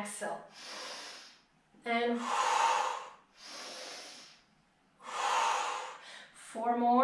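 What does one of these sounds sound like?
A young woman breathes in and out deeply and audibly.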